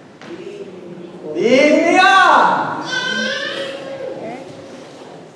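A middle-aged man speaks with animation in a reverberant hall.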